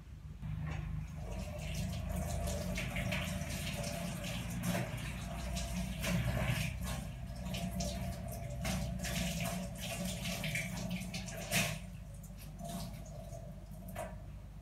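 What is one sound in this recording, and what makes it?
Dishes clink and clatter in a sink.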